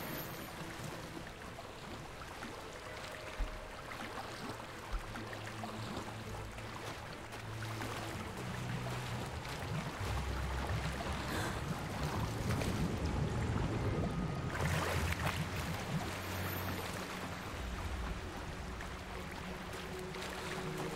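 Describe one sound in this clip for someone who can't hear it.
A swimmer splashes steadily through water.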